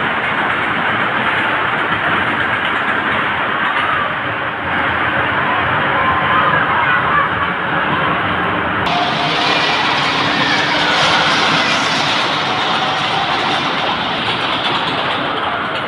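A roller coaster rumbles along its track overhead.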